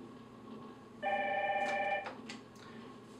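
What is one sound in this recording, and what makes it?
An intercom gives a short electronic ringing tone.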